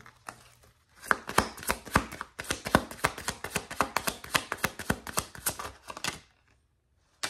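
Playing cards riffle and flick rapidly as they are shuffled.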